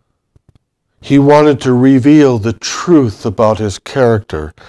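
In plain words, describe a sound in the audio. An elderly man speaks steadily through a microphone.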